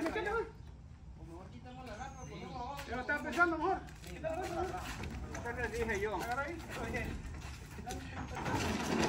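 Men talk with each other outdoors.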